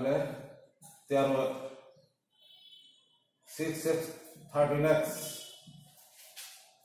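An elderly man speaks calmly in short phrases, close by.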